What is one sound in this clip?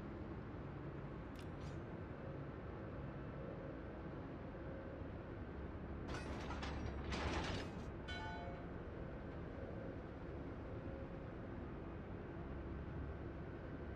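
A large ship's engine rumbles low and steady.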